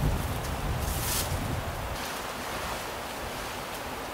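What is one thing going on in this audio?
Fabric rustles and flaps.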